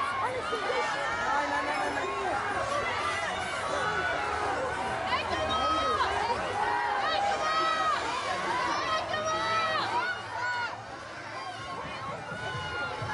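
A large outdoor crowd chatters and calls out all around.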